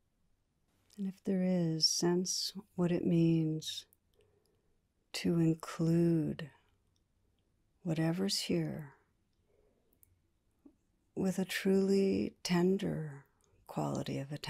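A woman speaks calmly and softly into a microphone, in short phrases with pauses.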